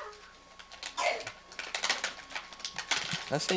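Wrapping paper crinkles and tears.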